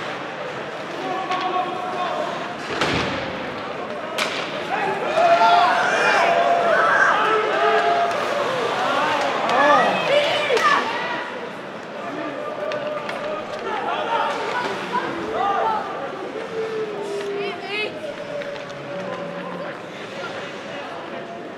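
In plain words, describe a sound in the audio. A crowd of spectators chatters in a large echoing arena.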